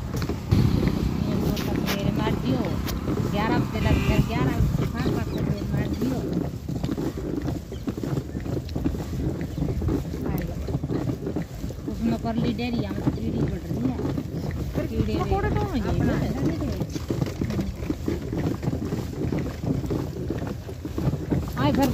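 A cart rumbles and rattles along a paved road.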